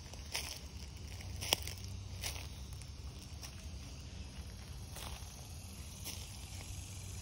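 Footsteps crunch on dry pine needles.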